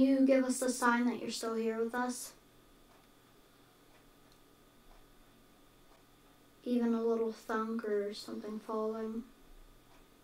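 A child speaks quietly close by, in short bursts with pauses.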